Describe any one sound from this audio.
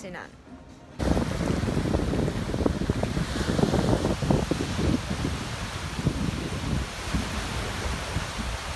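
Waves wash and break on a beach.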